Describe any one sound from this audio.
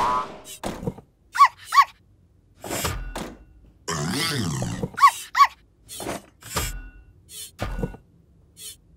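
Cabinet doors and drawers bang open and shut in quick bursts.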